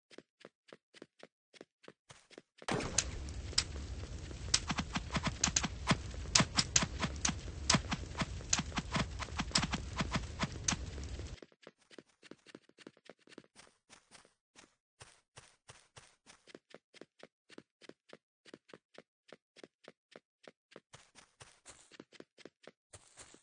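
Footsteps tap quickly and steadily on hard ground.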